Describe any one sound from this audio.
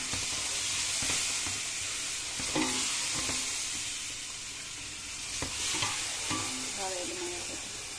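A wooden spoon scrapes and stirs a thick mixture in a pan.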